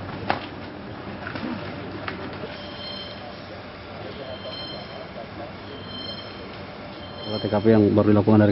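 People push through dense undergrowth, rustling leaves and snapping twigs.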